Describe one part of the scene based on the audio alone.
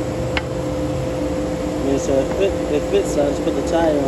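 A metal cone clanks onto a wheel hub.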